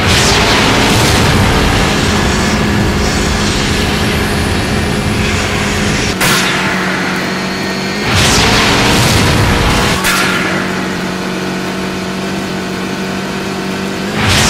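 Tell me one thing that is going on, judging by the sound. A quad bike engine drones steadily as it drives.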